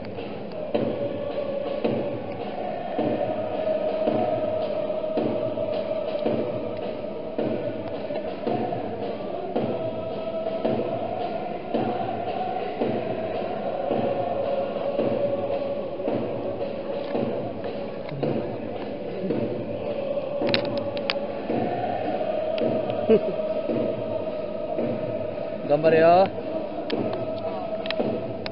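A stadium crowd claps and drums in a steady beat.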